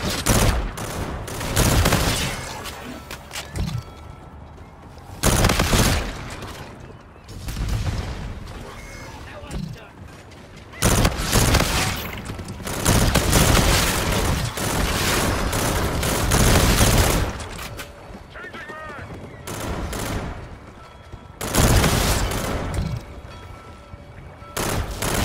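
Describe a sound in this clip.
Gunfire rattles in loud, short bursts.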